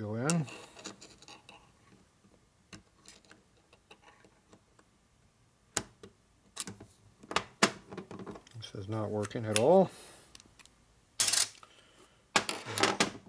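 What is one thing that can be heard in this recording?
Small metal parts clink against a metal surface.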